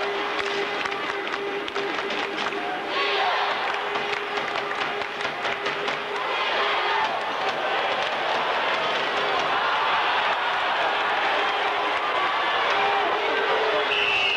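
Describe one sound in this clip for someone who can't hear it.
A crowd cheers and murmurs throughout a large echoing arena.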